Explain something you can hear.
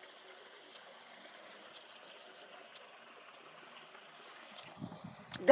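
A fishing reel clicks softly as its handle is turned.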